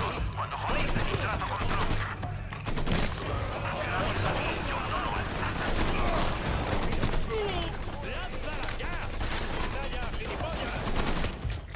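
Rapid gunshots fire in bursts, echoing in a large hall.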